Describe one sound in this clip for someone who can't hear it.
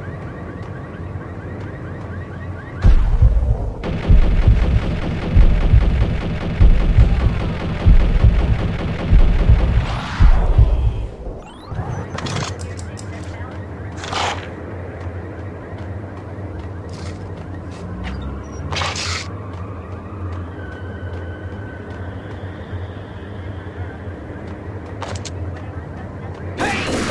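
Footsteps run on concrete.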